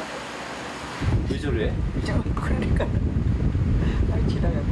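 An elderly woman speaks casually nearby.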